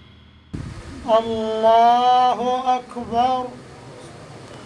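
A man chants in a long, drawn-out voice through a microphone in an echoing hall.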